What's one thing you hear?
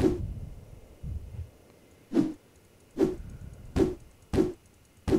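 Footsteps thud heavily at an even pace.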